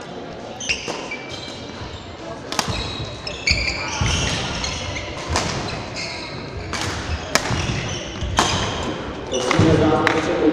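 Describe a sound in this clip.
Rackets strike a shuttlecock back and forth in an echoing hall.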